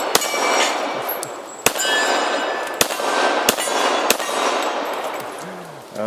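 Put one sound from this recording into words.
Steel targets ring after being hit.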